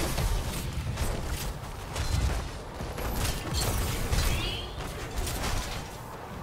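Game spells blast and crackle in rapid bursts.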